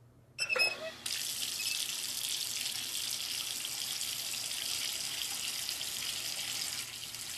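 Water sprays hard from a shower head in a steady rush.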